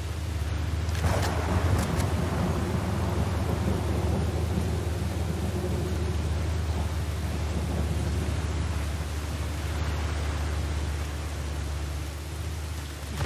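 An armoured vehicle's engine rumbles close by.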